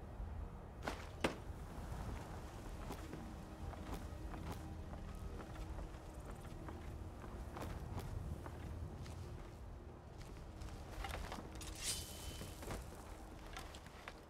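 Footsteps thump on wooden stairs and boards.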